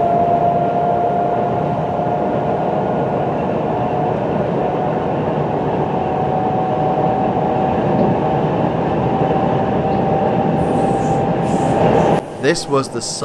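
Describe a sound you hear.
A train's motor whines with a steady high tone.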